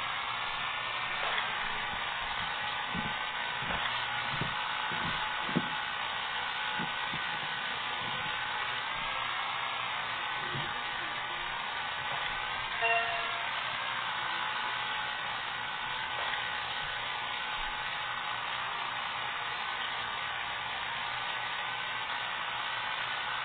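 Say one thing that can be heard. A motorbike engine revs steadily.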